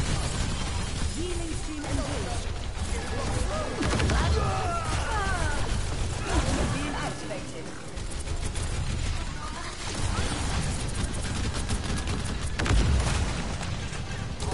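Rapid gunfire crackles and bursts loudly.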